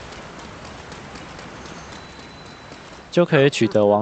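A waterfall roars and splashes.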